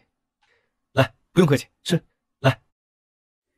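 A man says a few short words.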